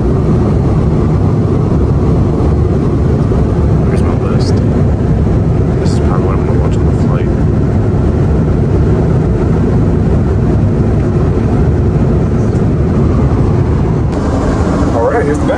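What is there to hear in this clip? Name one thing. A steady low roar of aircraft engines drones throughout.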